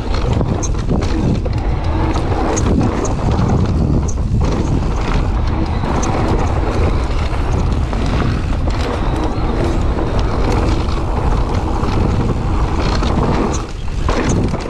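Bicycle tyres crunch and rumble over a dirt trail.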